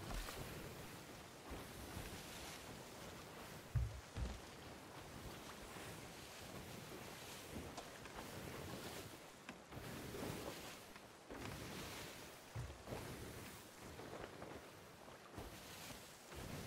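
Rough sea waves surge and crash against a ship's hull.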